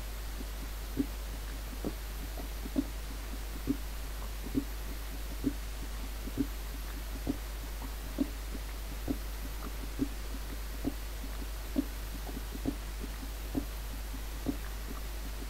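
A pickaxe chips at stone with steady, regular taps.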